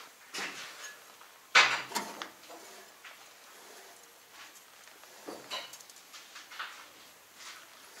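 A hand flicks metal tines, which clack and rattle.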